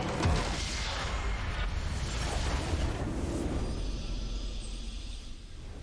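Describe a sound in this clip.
A triumphant game fanfare plays.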